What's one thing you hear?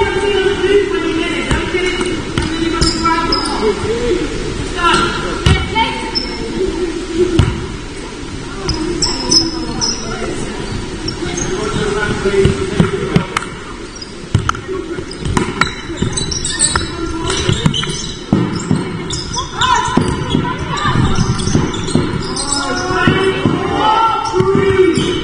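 Young women and spectators call out and chatter in an echoing hall.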